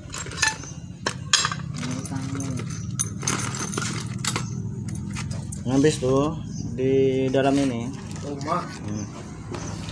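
Metal parts clink and rattle as they are handled.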